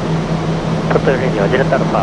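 An aircraft engine drones steadily inside a cabin.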